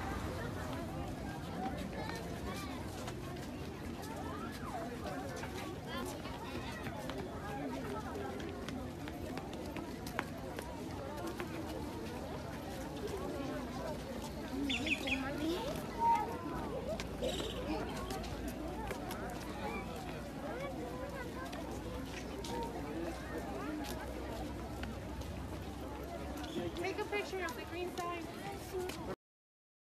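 Many footsteps shuffle on pavement.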